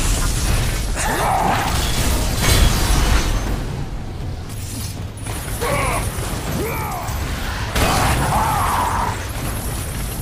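A huge creature roars and growls.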